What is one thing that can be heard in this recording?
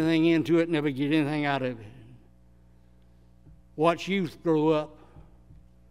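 An elderly man speaks slowly and solemnly into a microphone in a large echoing hall.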